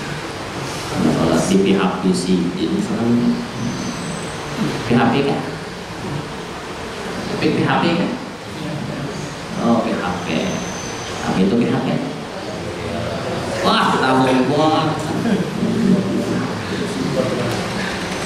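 A young man speaks calmly into a microphone over a loudspeaker in an echoing room.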